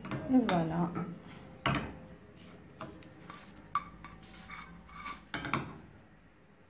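A frying pan scrapes and clanks against a metal stove grate.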